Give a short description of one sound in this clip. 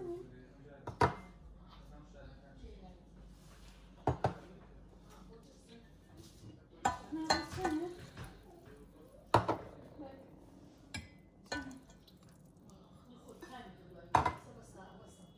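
Glass cups clink on a hard counter.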